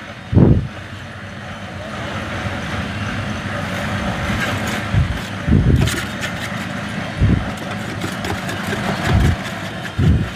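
A trowel scrapes and taps on wet cement.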